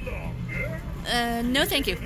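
A talking figure cackles loudly with a rising, wavering laugh.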